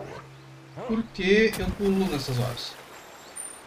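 Water splashes as a character runs through a stream.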